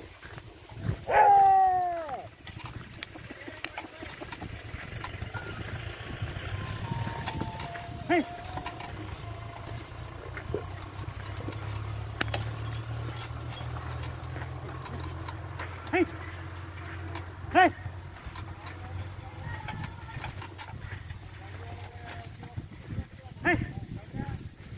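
An elderly man calls out short shouts to the bullocks.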